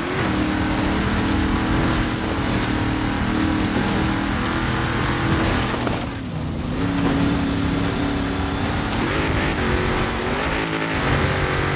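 A truck engine roars loudly and changes pitch as it shifts gears.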